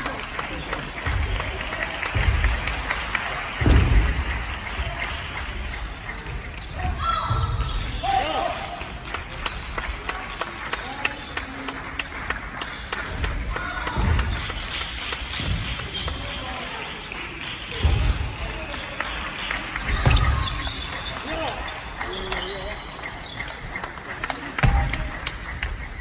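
Shoes squeak and thump on a wooden floor.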